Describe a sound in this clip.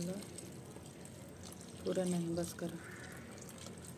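Milk pours and splashes into a metal pot.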